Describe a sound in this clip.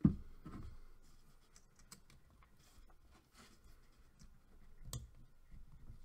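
Wire connectors click as they are pushed together.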